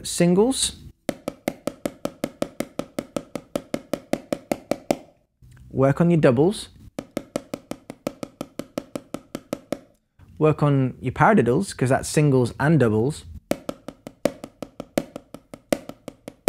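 Drumsticks tap quickly and evenly on a rubber practice pad.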